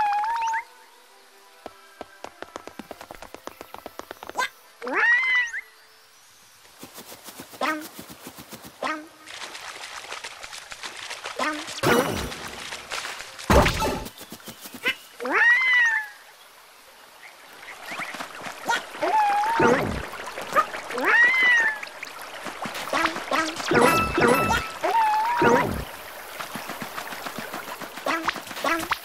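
Quick little footsteps patter along.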